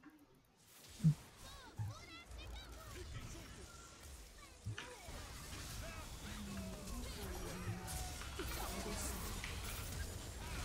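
Game effects clash and whoosh in a battle.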